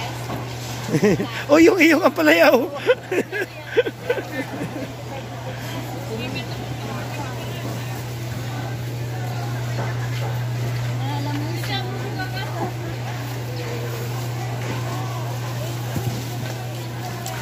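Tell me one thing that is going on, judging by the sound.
A busy outdoor market murmurs with distant chatter.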